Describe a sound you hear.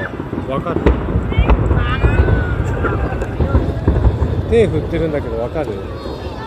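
Fireworks boom and crackle in the distance.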